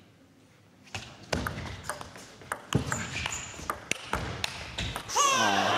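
A table tennis ball clicks back and forth on paddles and table.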